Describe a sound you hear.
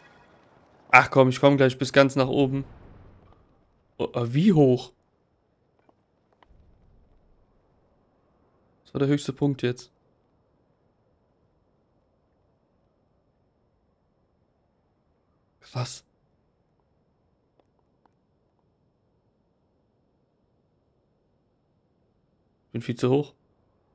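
A man talks in short bursts close to a microphone.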